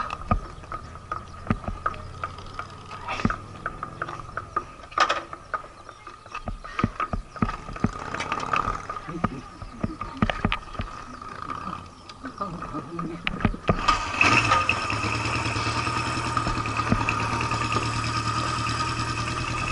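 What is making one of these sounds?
A motorcycle engine idles close by with a steady rumble.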